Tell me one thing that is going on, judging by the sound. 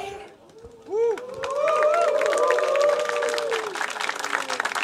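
A crowd cheers and screams loudly in a large hall.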